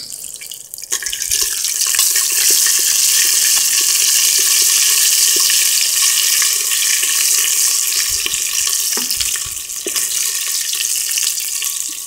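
Oil sizzles loudly in a hot pot.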